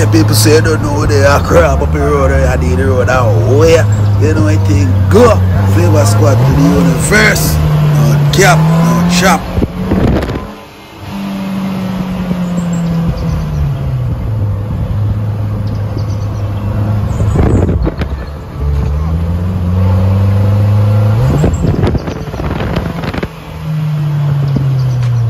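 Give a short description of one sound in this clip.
Wind rushes past in an open vehicle.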